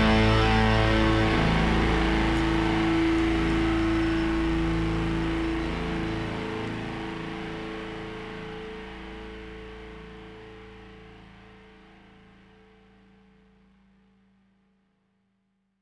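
A live band plays loud music in a large hall and slowly fades out.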